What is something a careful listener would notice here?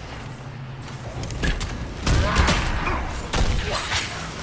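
Magic blasts burst and crash loudly in a fight.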